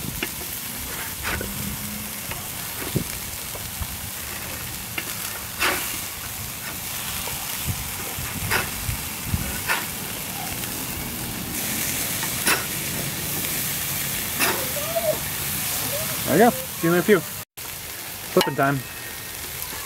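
Burgers sizzle softly on a grill.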